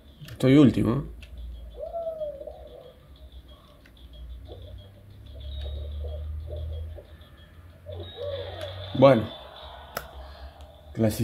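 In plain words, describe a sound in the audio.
Playful video game sound effects chime and bounce from a television speaker.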